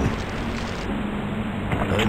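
A heavy kick lands with a thud.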